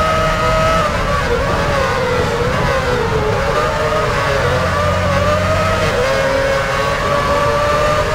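Other racing car engines whine close by as cars are overtaken.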